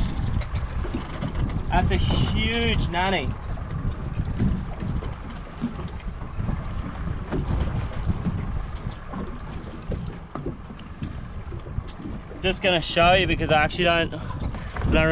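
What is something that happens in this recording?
Wind blows and rumbles outdoors on open water.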